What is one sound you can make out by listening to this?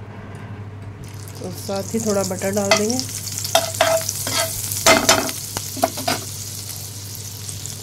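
Butter sizzles and crackles in a hot pan.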